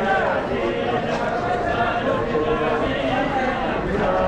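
Many hands beat on bare chests in a rhythmic thumping.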